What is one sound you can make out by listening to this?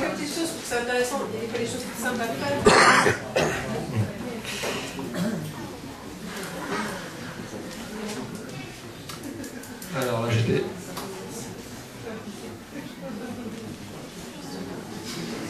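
A middle-aged man speaks calmly through a microphone in a room with some echo.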